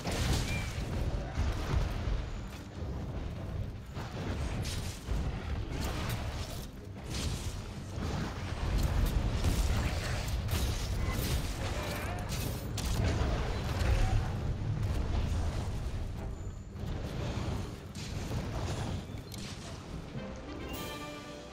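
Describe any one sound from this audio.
Heavy weapon blows thud and crash against a huge beast.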